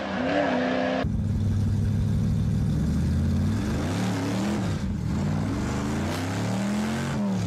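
A car engine roars close by, rising and falling in pitch as it shifts gears.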